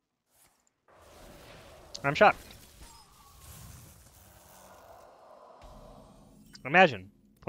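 Magical game effects whoosh and chime.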